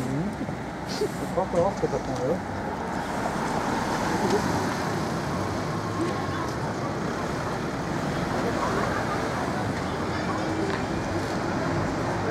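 An electric tram rolls along rails.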